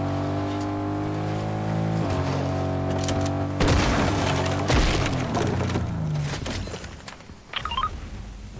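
A car engine revs and drives over rough ground, then stops.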